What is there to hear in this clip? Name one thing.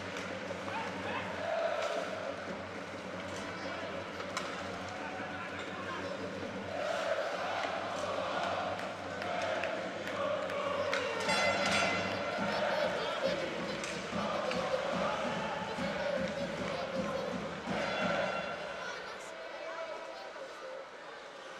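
A hockey stick slaps a puck with a sharp crack.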